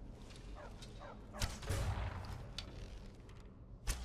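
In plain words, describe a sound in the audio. An arrow strikes a creature with a thud.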